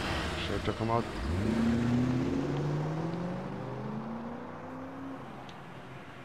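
A car engine starts and revs up, then settles.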